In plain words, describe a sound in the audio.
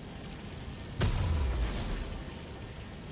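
A deep magical blast booms and rumbles away.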